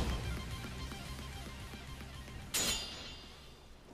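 Swords slash and clang sharply.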